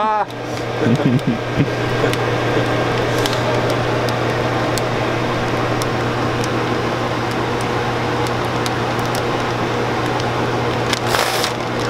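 Small clicks and ticks come from a running machine.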